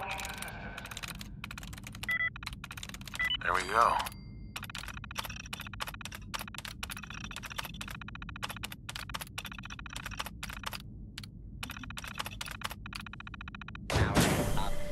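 A computer terminal clicks and ticks rapidly as text prints.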